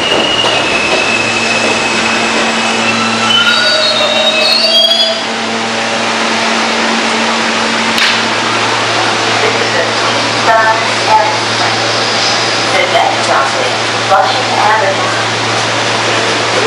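A stopped subway train hums.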